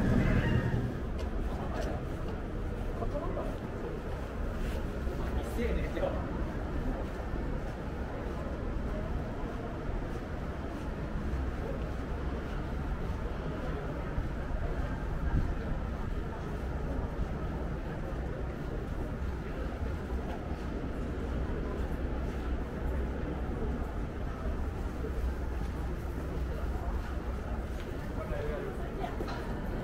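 Footsteps tap on pavement as a walker moves along.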